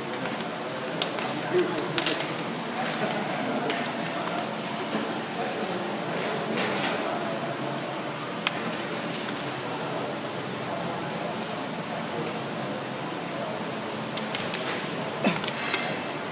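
Wooden game pieces clack sharply onto a table.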